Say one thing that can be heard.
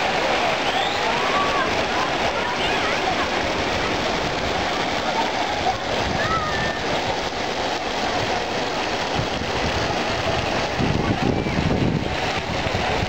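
A crowd of bathers chatters and shouts outdoors, far off across a pool.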